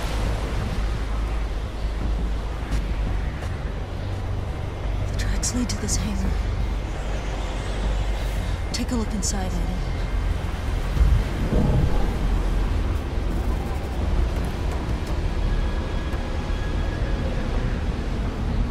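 Strong wind howls and roars steadily outdoors in a snowstorm.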